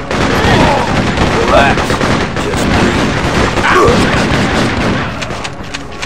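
Gunshots fire rapidly, echoing in a large room.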